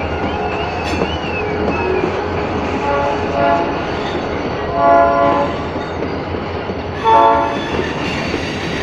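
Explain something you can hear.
A diesel locomotive engine rumbles up close.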